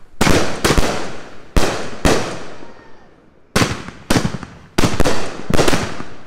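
Fireworks burst with loud booming bangs, one after another.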